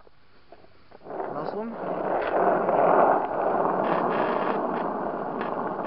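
Skateboard wheels roll and rumble over asphalt.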